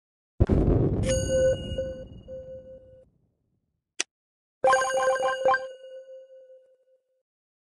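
A bright chime rings out as a level is completed.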